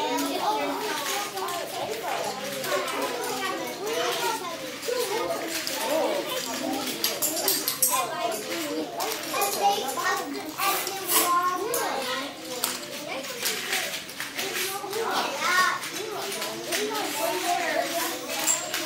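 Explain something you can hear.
Young children chatter and talk together in a room.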